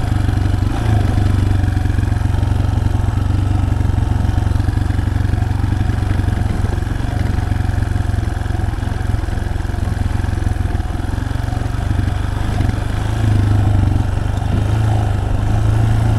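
Tyres crunch over loose gravel and dirt.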